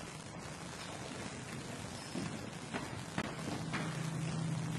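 Footsteps tap on a hard floor in a quiet echoing room.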